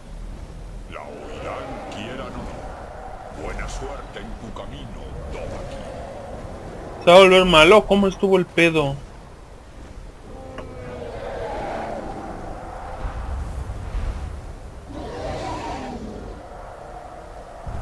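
Wind howls in a snowstorm.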